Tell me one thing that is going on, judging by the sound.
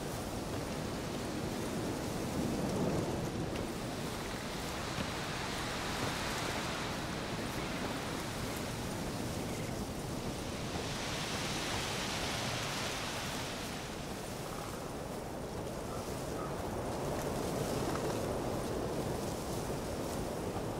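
Wind rustles through forest leaves.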